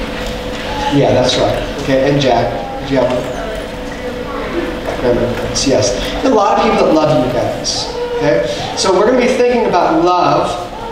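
A man speaks calmly to a group in a large echoing room.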